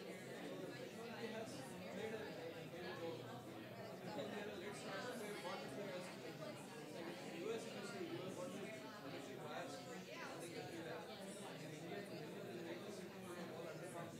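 Several men and women chat in overlapping voices in a large room.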